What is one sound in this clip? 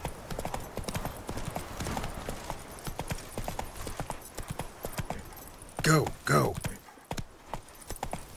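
Horse hooves clop rapidly on a dirt path.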